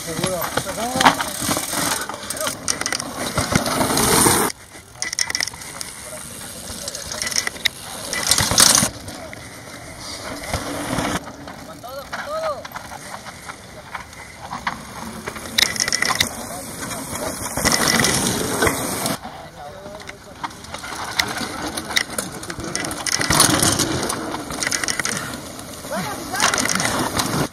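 Bicycle tyres crunch and skid over loose dirt.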